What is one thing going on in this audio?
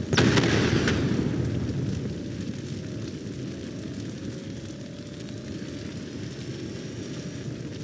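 Fires crackle and roar nearby.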